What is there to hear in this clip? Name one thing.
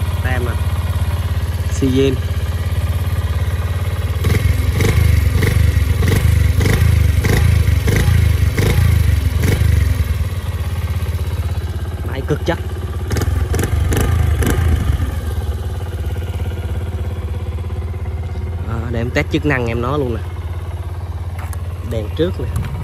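A motorcycle engine idles with a steady, low rumble.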